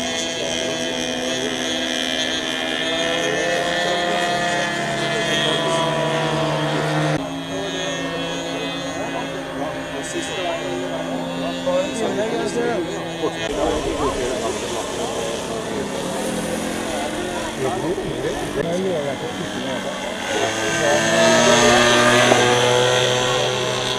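A model airplane engine drones and whines overhead, rising and falling in pitch.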